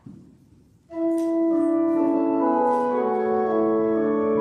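A pipe organ begins to play loudly.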